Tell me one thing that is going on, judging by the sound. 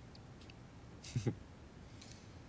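A young man chuckles softly.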